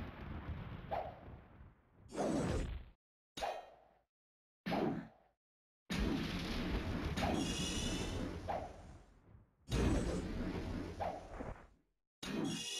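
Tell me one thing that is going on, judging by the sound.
Video game sword strikes land in short bursts.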